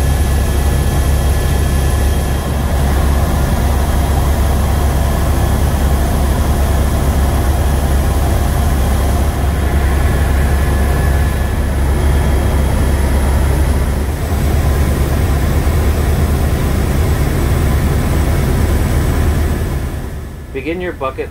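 A helicopter engine and rotor drone loudly and steadily, then fade down at the end.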